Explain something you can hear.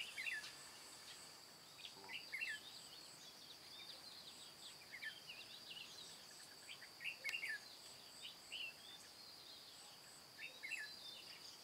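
A caged bird chirps and whistles in short bursts.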